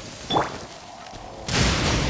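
A bowstring twangs as an arrow is shot.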